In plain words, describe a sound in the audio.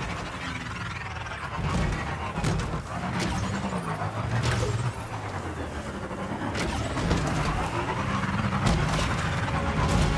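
Tyres crunch over dirt and gravel.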